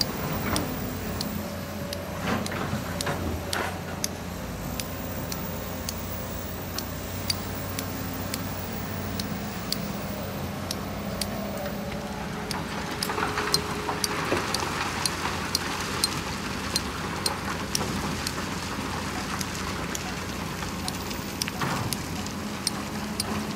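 Diesel engines of heavy excavators rumble steadily.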